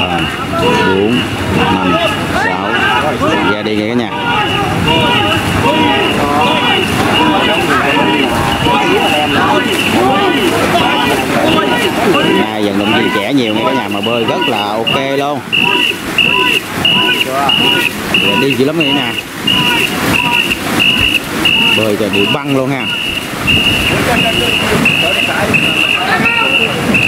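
A crowd of men and women shout in rhythm outdoors.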